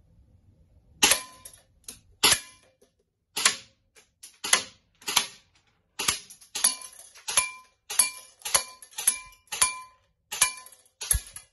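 Pellets strike a paper target in quick sharp snaps.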